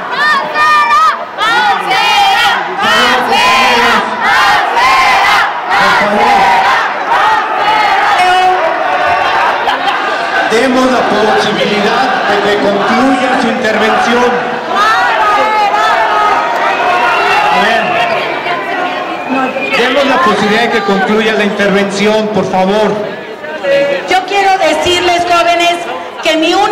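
A large crowd chants loudly in a big echoing hall.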